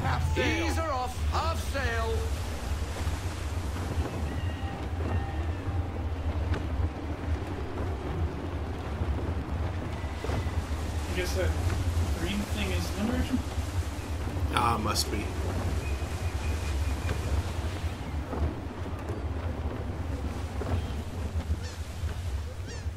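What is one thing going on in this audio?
Wind blows through a ship's sails and rigging.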